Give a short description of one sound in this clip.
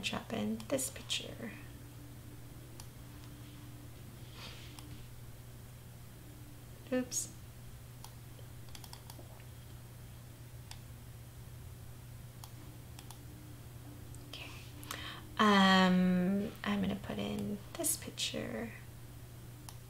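A young woman talks calmly and close to a microphone, in short bursts.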